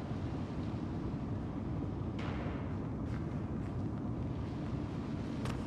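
A heavy cart rolls along a metal rail with a low rumble.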